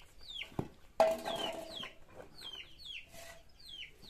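A ladle scrapes and stirs inside a large metal pot.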